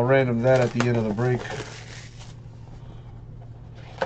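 A foil card wrapper crinkles and tears open.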